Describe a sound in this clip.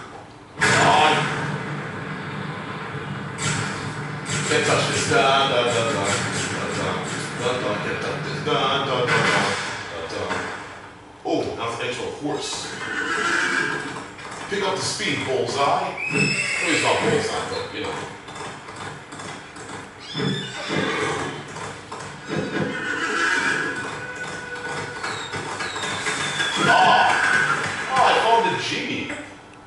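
Video game music and sound effects play from a television's speakers.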